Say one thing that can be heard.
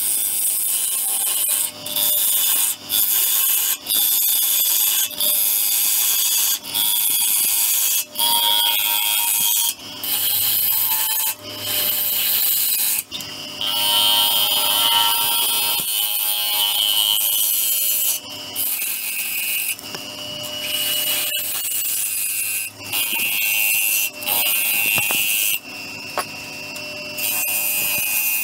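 A lathe hums steadily.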